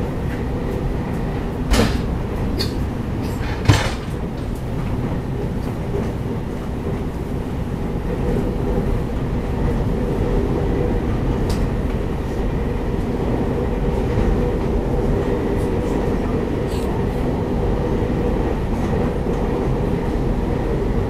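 An electric multiple-unit train rumbles along the rails at speed, heard from inside the carriage.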